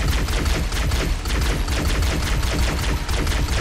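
A rapid-fire weapon shoots in quick bursts.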